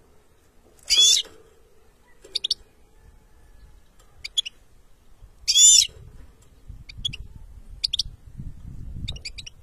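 A small bird sings close by in bright chirps and trills.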